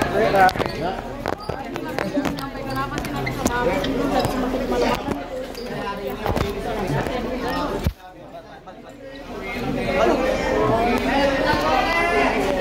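A crowd of men and women talk and shout over one another close by.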